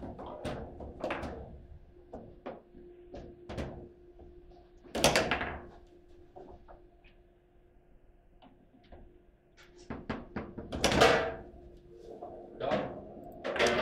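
Foosball rods clack and rattle in their sleeves.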